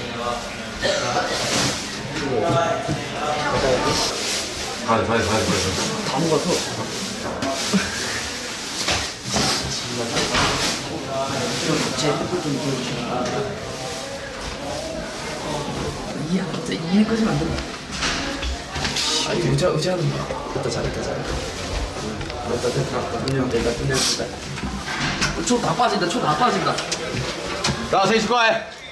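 A young man speaks close by in a hushed, nervous voice.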